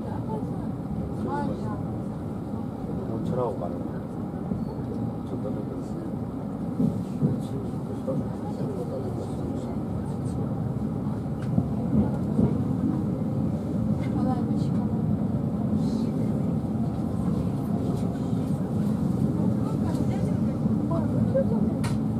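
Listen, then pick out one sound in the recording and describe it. A train rumbles steadily along the tracks, growing louder as it goes.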